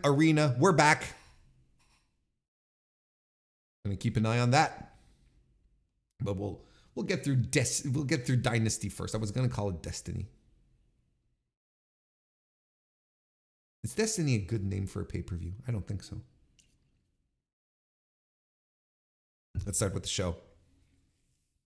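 A middle-aged man speaks calmly and closely into a microphone, in short bursts with pauses.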